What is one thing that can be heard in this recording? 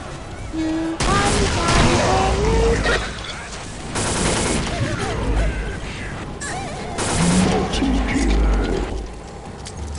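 Heavy gunfire and explosions boom in bursts.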